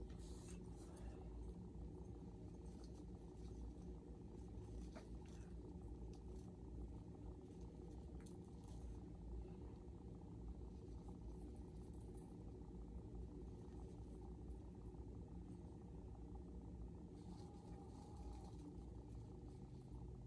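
Plastic tree branches rustle softly.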